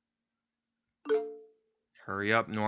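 A phone notification chimes briefly.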